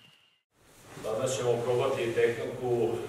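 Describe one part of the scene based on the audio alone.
An elderly man speaks calmly in an echoing room.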